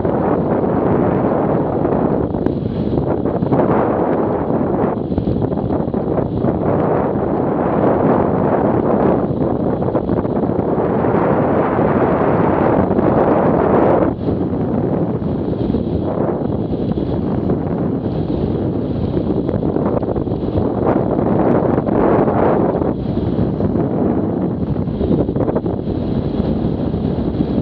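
Wind roars loudly against a motorcycle rider's helmet.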